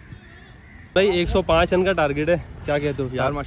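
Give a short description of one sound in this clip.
A young man speaks close up with animation.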